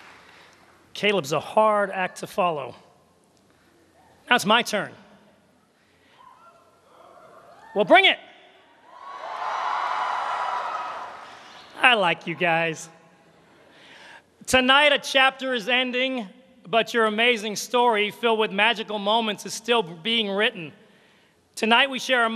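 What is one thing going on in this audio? A man speaks with animation into a microphone, heard over loudspeakers in a large echoing hall.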